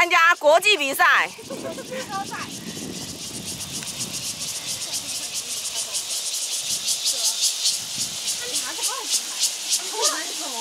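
Bicycle tyres roll along a paved path.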